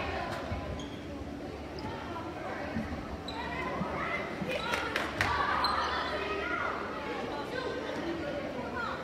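A crowd of spectators talks and cheers in an echoing gym.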